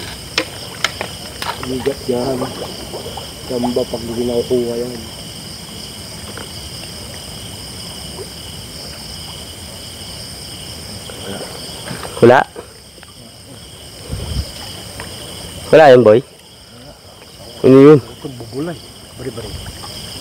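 Water splashes as a man wades and gropes in it.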